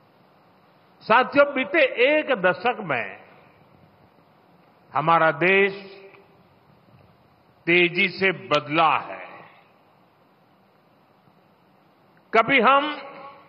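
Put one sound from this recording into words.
A man gives a speech into a microphone, speaking forcefully with pauses.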